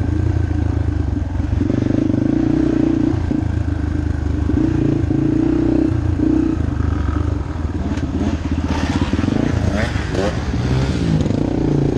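Tyres crunch and thump over a rough dirt trail.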